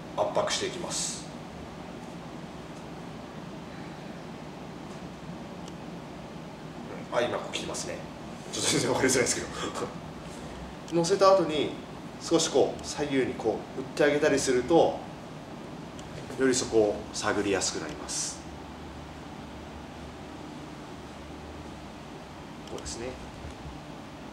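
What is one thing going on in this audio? A young man speaks calmly and explains, close by.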